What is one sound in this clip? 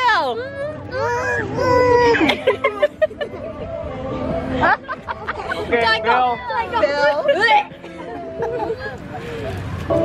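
Children shout and laugh excitedly close by.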